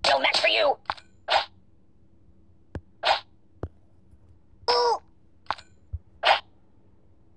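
A cartoon ragdoll thuds and bounces against walls in short bursts.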